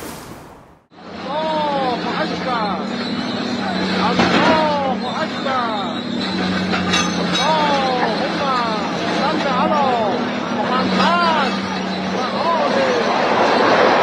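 A bulldozer engine rumbles steadily.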